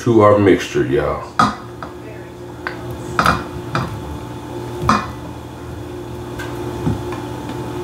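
Soft chunks of food tumble into a bowl.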